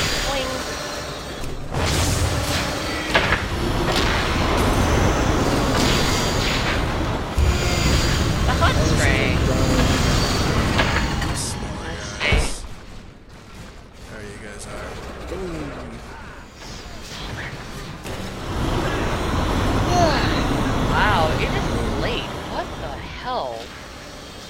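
Game spells whoosh and crackle as a character fights.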